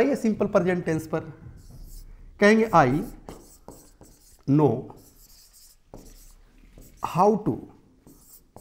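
A man speaks clearly and with animation into a close microphone, pausing between phrases.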